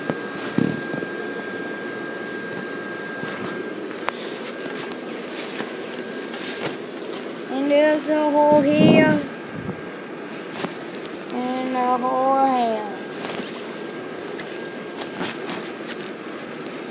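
Cloth rustles and scrapes close against the microphone.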